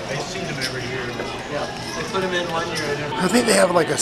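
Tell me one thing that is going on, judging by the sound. People chatter in a large room.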